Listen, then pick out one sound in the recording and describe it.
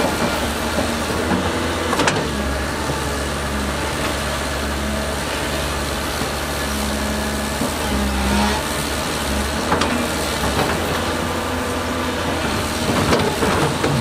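A dump truck engine drones as the truck rolls slowly forward.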